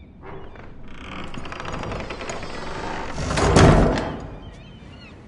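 A wooden door creaks and swings open.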